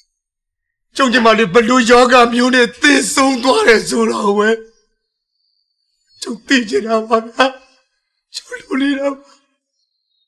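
A man speaks in a choked, tearful voice.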